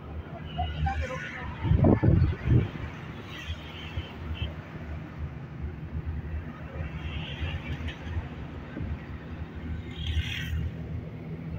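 Traffic rushes past on the road outside.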